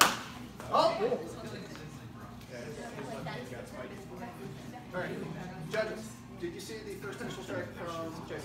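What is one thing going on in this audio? Men talk casually in an echoing hall.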